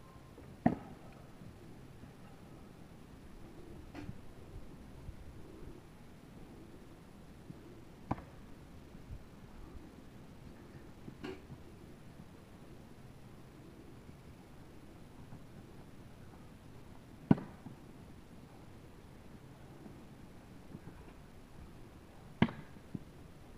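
An axe thuds sharply into a wooden target, now and then.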